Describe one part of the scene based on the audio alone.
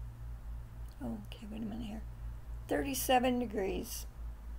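An older woman speaks calmly, close to a microphone.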